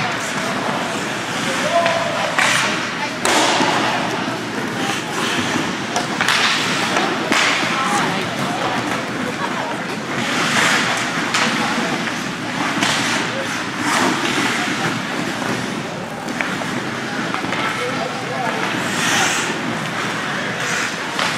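Hockey sticks clack against a puck and against each other.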